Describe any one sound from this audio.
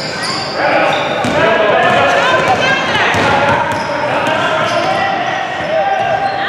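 Children shout and cheer in a large echoing gym.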